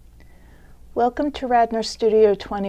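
An older woman speaks calmly and clearly into a microphone, close by.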